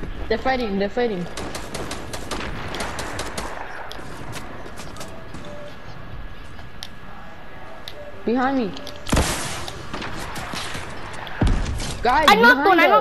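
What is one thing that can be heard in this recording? Rapid gunshots crack in bursts.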